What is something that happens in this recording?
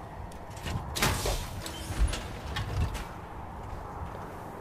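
Heavy metal armor plates clank and hiss.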